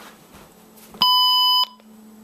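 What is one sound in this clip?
An electronic device gives a steady, high beep.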